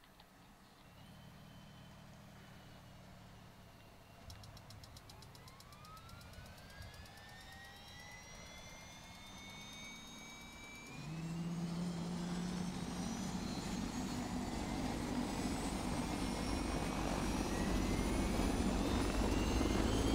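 Helicopter rotor blades spin up into a loud, growing roar.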